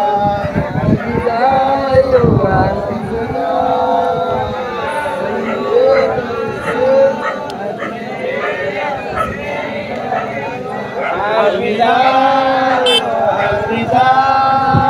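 A group of men chant loudly together outdoors.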